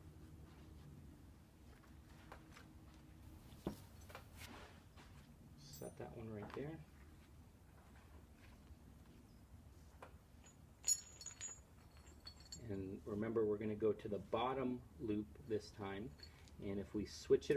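Metal clips clink and rattle as they are handled.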